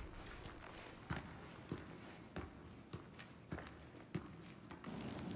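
Footsteps tap on a stone floor in an echoing hall.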